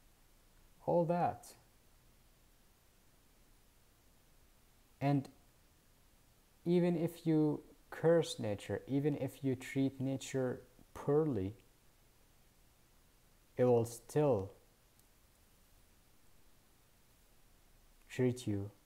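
A young man speaks calmly and close up, in short bursts with pauses.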